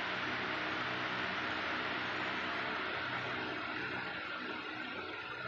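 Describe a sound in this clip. Water laps and splashes steadily in an echoing indoor pool.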